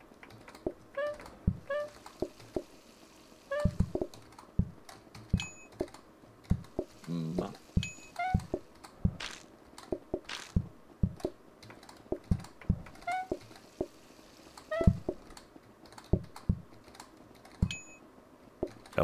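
Short electronic chimes and pops ring out now and then.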